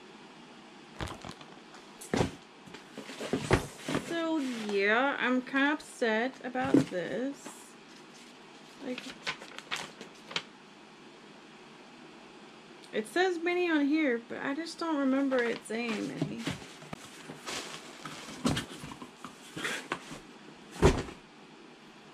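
Paper rustles and crinkles in a woman's hands.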